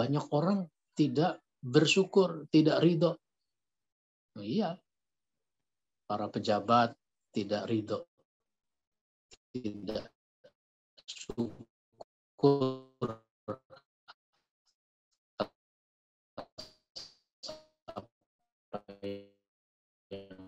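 A middle-aged man speaks calmly into a microphone, as if giving a lecture online.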